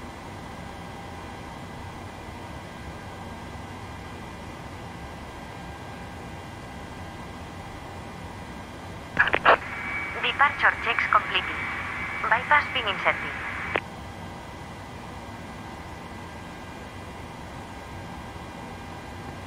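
Aircraft engines hum with a steady low drone.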